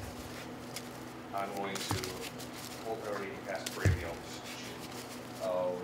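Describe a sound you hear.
A deck of playing cards is shuffled by hand.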